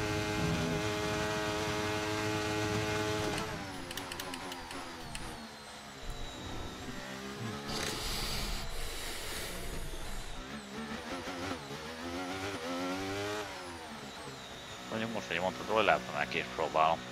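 A racing car engine whines at high revs, dropping and rising in pitch through gear changes.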